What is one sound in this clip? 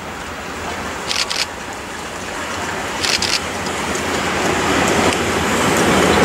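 A steam locomotive chuffs heavily as it approaches and passes.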